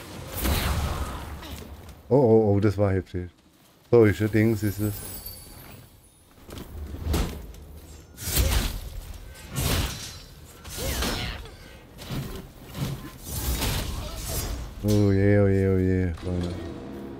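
Swords swing and strike in a fast fight.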